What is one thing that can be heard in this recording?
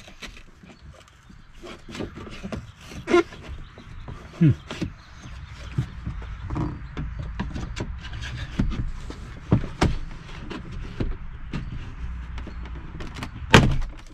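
Hands knock and rattle against a car door panel.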